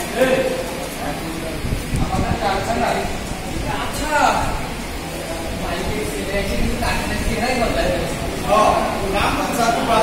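Men speak and call out loudly through a microphone in a large echoing hall.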